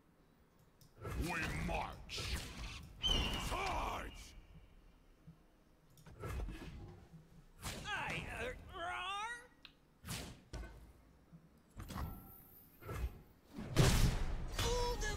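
Short magical whooshes and chimes play from a card game.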